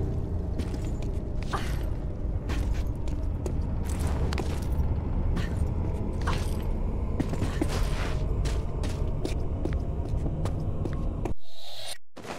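Footsteps run across a stone floor.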